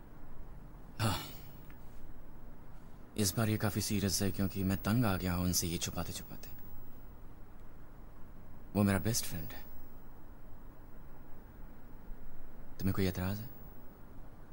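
A man speaks softly and quietly, close by.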